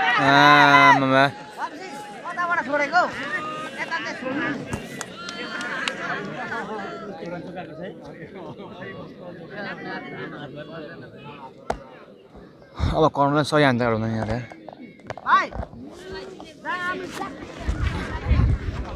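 A large crowd of spectators chatters and shouts outdoors.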